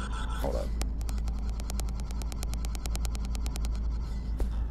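Rapid electronic ticks sound as a counter quickly counts down.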